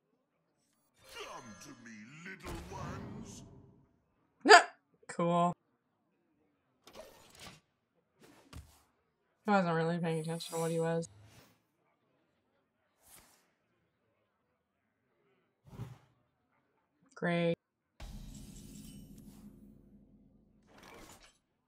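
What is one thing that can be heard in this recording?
Digital game sound effects whoosh and chime as cards are played.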